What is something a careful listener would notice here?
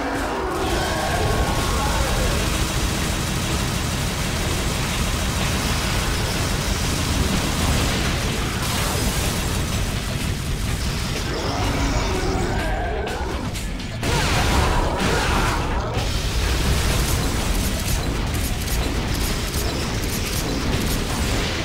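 Metal blades clash and strike against armoured creatures with heavy impacts.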